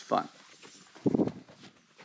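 Horse hooves shuffle on straw.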